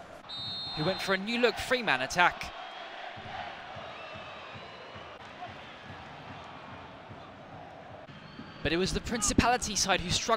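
A large stadium crowd murmurs and chants steadily in the open air.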